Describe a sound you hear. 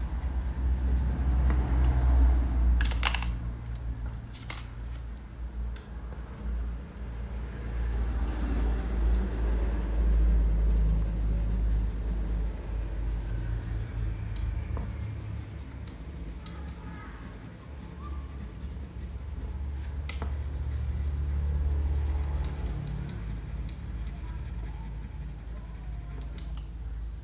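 A crayon scratches softly across paper.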